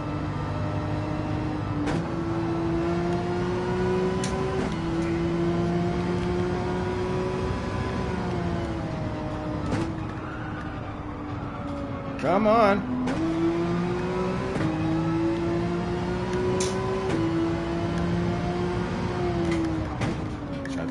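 A racing car engine drones steadily, its pitch climbing and dropping with each gear change.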